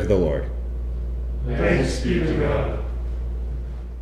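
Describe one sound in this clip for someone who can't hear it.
A young man speaks calmly into a microphone in an echoing room.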